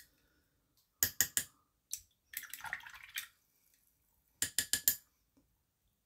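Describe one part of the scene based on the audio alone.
Plastic parts click and tap as a small model is handled.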